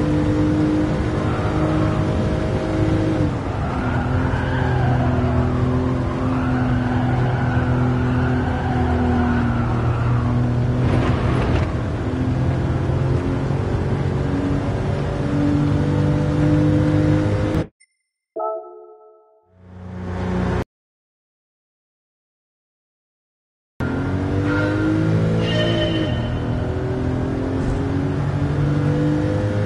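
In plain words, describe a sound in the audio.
A racing car engine roars steadily at high revs, cuts out, then returns.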